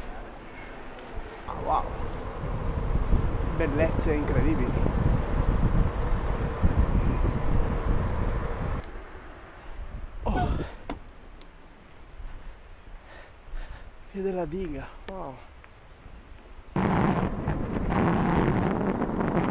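Wind rushes and buffets loudly past a rider moving along a road.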